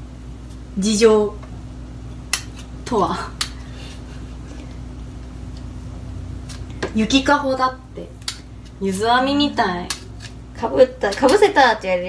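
A knife scrapes the skin off a potato.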